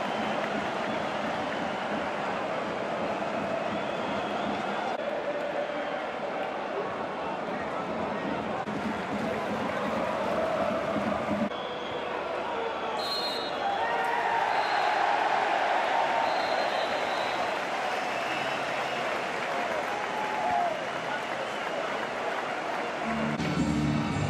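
A large stadium crowd chants and cheers loudly.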